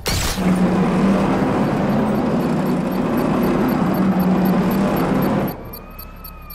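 A vehicle engine roars loudly.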